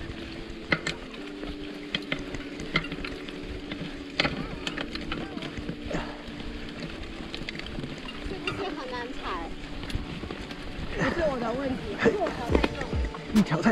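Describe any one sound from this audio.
Bicycle tyres roll and rattle over a rough dirt trail.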